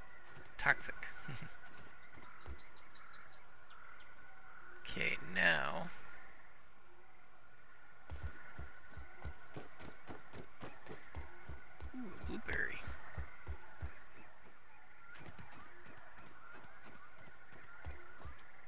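Footsteps rustle through grass and leaves.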